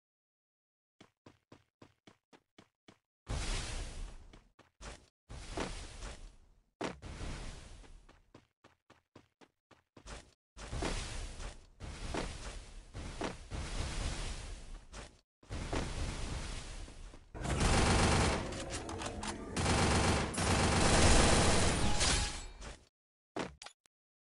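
Footsteps run quickly across grass.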